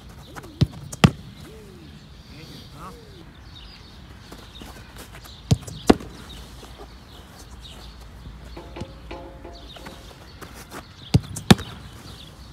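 A goalkeeper's gloves smack against the ball.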